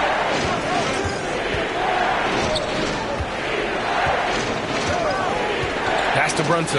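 A basketball bounces rhythmically on a hard court.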